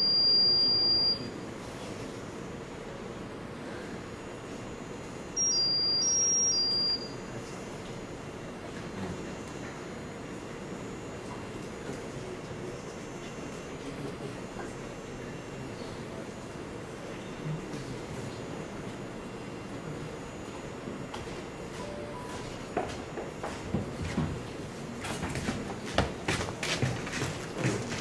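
A young man speaks calmly through a microphone in an echoing hall.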